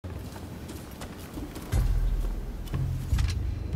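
Boots thud on a wooden floor.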